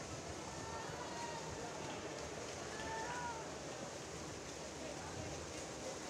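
Swimmers splash through the water in an echoing hall.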